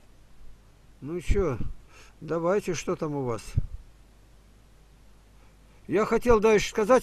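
An elderly man speaks slowly into a close microphone, with pauses.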